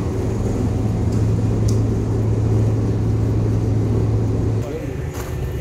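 A machine hums and rumbles loudly.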